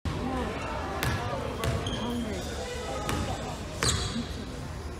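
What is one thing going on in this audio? A basketball bounces on a wooden floor in a large echoing gym.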